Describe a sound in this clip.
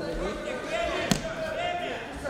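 A judo fighter slaps at an opponent's jacket.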